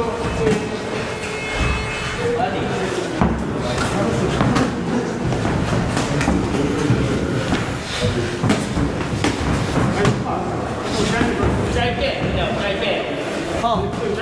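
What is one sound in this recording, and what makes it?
Padded boxing gloves thud against each other and against the body.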